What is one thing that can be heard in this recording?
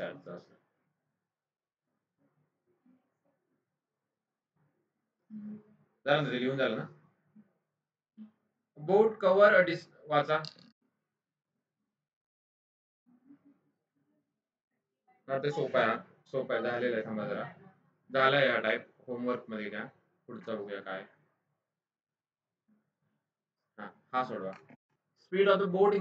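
A man speaks calmly into a close microphone, in bursts with long pauses.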